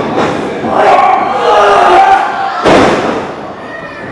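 A wrestler slams onto the ring mat with a heavy thud.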